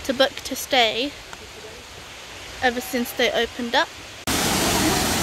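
A young woman talks calmly, close to the microphone.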